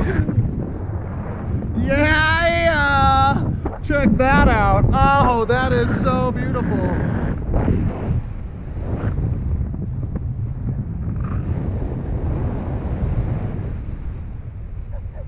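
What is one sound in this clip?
Wind rushes loudly past during a fast flight through open air.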